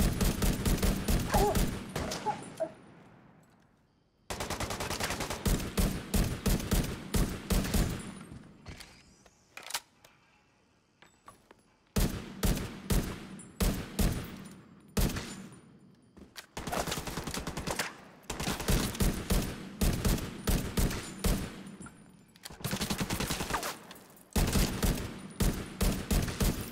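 Automatic rifles fire in rapid, loud bursts.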